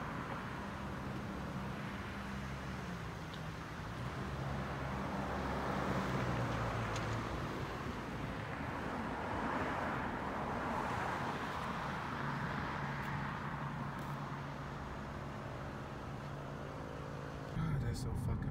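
Traffic rushes by on a nearby street.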